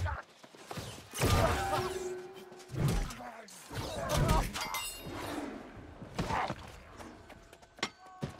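Blows and magic blasts crash in a fight.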